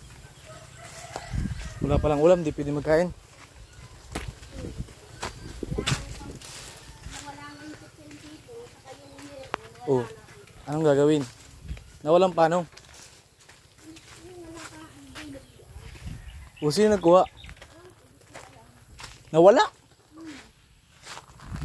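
A person walks barefoot over dry leaves and dirt.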